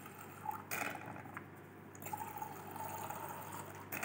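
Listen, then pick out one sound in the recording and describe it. Water squirts from a squeeze bottle into a glass tube.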